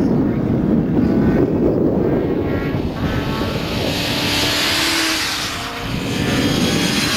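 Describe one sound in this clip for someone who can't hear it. Racing motorcycle engines roar past at high speed.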